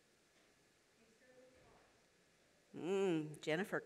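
A woman speaks into a microphone over a loudspeaker, in a large echoing room.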